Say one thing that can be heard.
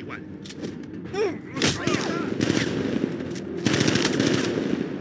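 Heavy punches thud in a brief scuffle.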